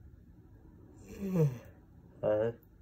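A young man yawns loudly close by.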